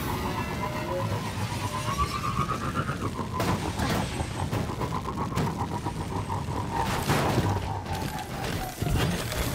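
A vehicle engine roars as a rider speeds along.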